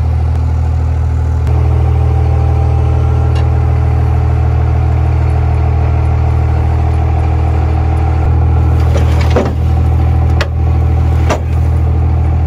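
A crushing machine's engine hums steadily.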